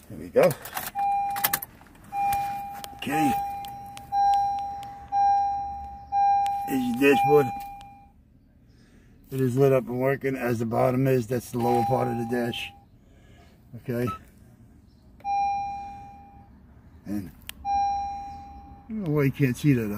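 A car's warning chime beeps steadily over and over.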